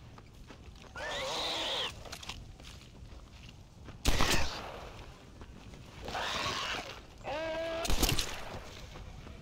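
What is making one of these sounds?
A man grunts and cries out in pain.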